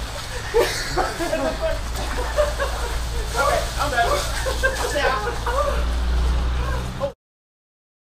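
Young men shout and laugh close by.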